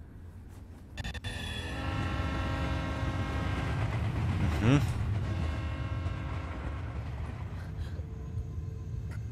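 A steam train rumbles past.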